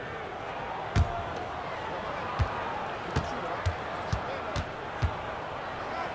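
A basketball bounces several times on a hardwood floor.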